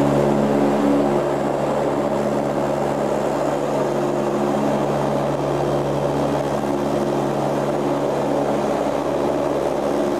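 Jet engines roar steadily with a loud, droning hum.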